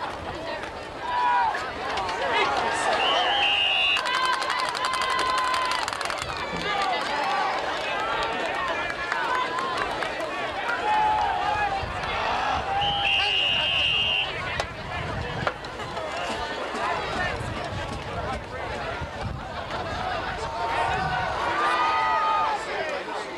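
A large crowd of spectators cheers and shouts outdoors.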